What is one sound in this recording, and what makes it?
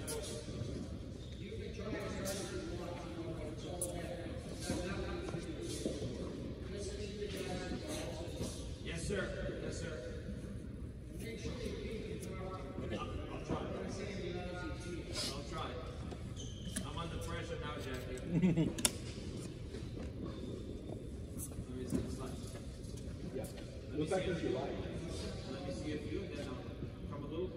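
Tennis balls are struck with rackets, with sharp pops echoing in a large hall.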